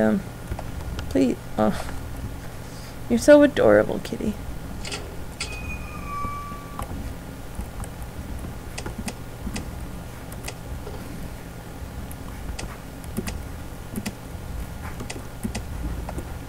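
Short game menu blips click now and then.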